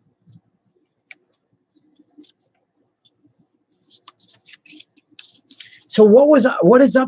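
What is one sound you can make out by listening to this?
Stiff paper cards rustle and tap softly as they are handled.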